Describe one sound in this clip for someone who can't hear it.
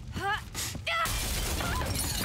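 A blast bursts with a loud whoosh.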